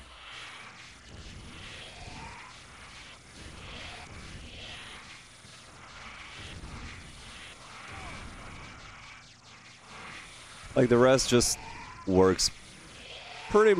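Fireballs whoosh and burst with loud blasts.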